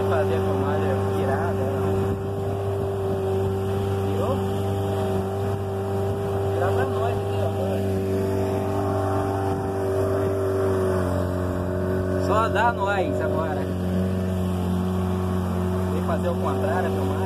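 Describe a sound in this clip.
Water splashes against a moving boat's hull.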